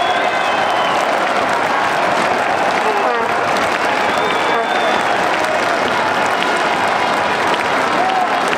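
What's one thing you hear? A large crowd chants and cheers steadily outdoors.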